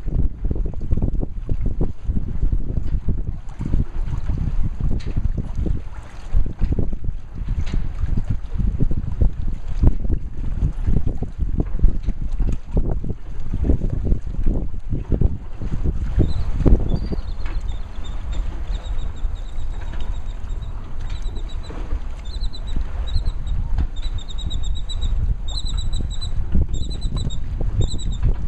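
Wind buffets and rumbles loudly outdoors over open water.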